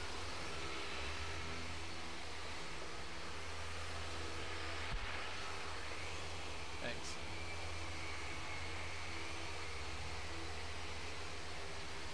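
Electric polishing machines whir steadily against a car body.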